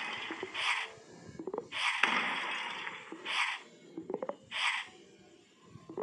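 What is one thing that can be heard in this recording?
Blocks thud as they drop into place.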